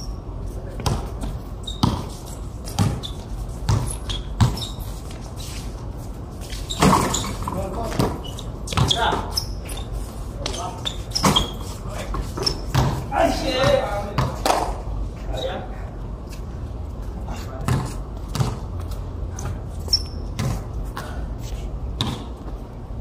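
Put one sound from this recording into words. A basketball bounces on a hard court, thumping again and again.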